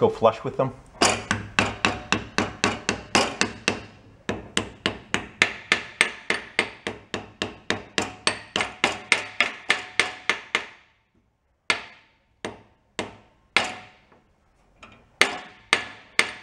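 A hammer taps rapidly on a metal punch, with sharp ringing metallic knocks.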